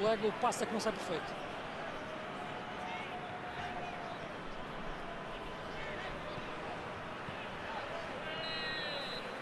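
A large crowd murmurs and roars steadily in a stadium.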